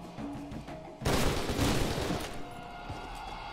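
Gunfire rattles in a short, loud burst.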